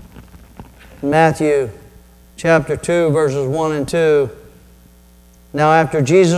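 A middle-aged man speaks expressively into a microphone in a large echoing hall.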